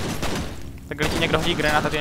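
Gunshots fire loudly.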